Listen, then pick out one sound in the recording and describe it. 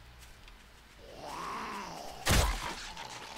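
A zombie growls and groans nearby.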